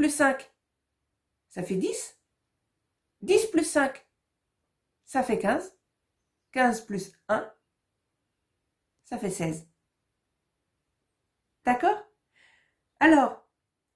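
A woman speaks slowly and clearly into a close microphone, in short phrases with pauses.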